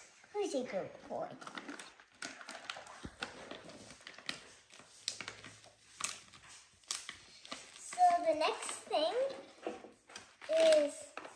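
A young girl speaks brightly close by.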